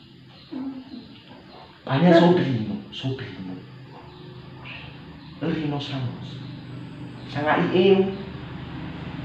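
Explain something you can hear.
An elderly woman speaks in short bursts, close by.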